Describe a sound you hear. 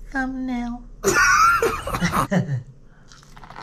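A woman bites into corn on the cob with a loud crunch.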